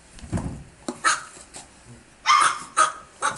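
A small puppy yips in short high bursts.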